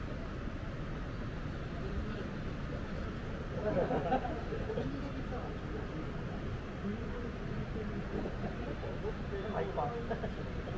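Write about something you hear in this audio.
A crowd of people murmurs in the distance.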